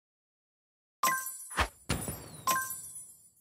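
A bright game victory chime rings out with sharp hits.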